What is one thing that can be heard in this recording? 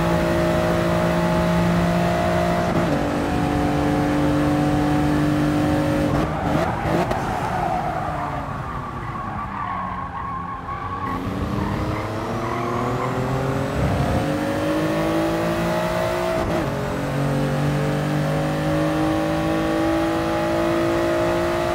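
A racing car engine roars at high revs, dropping in pitch as it shifts gears, slowing for a bend and then climbing again.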